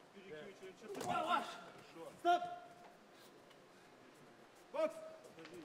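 A man shouts commands sharply nearby.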